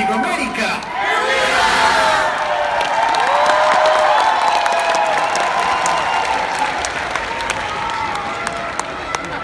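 A large crowd cheers and screams loudly in a big hall.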